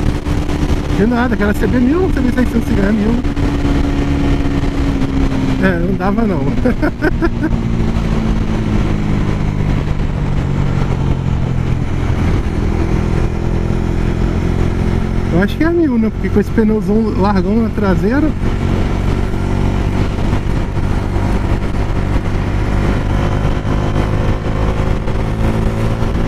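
A motorcycle engine hums steadily at cruising speed.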